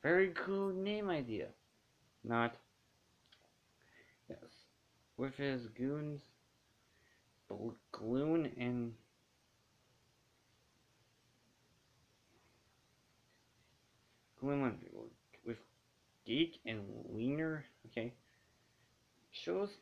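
A young man speaks calmly and close, in short bursts with pauses.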